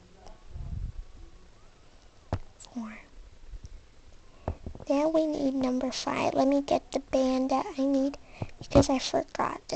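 Yarn rustles softly as a crochet hook pulls loops through it.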